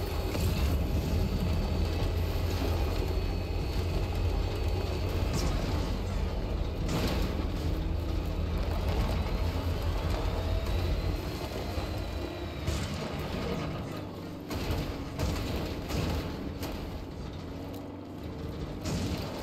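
A vehicle engine rumbles steadily as it drives over rough ground.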